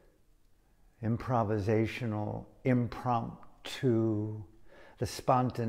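An elderly man speaks calmly and close to a microphone.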